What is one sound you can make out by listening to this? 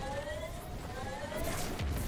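A crackling energy blast fizzes.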